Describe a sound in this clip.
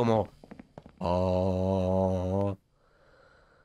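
A young man draws out a long, loud cry into a microphone.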